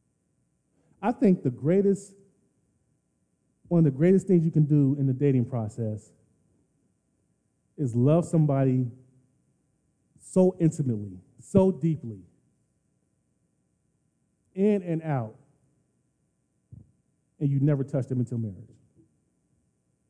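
A man speaks calmly into a microphone in bursts, heard through a loudspeaker in a large room.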